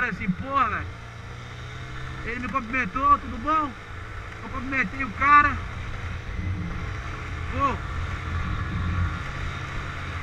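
A motorcycle engine hums low and steady while riding.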